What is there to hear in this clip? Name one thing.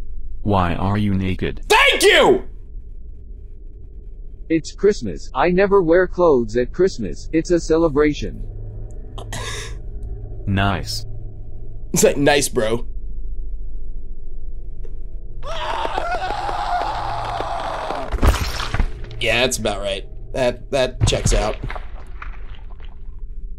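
A young man talks animatedly into a close microphone.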